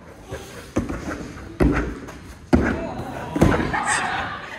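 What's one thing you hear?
A body thumps heavily onto a padded mat.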